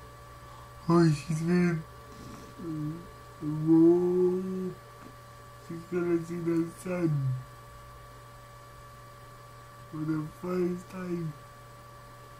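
A young man speaks close to a microphone in short, animated bursts.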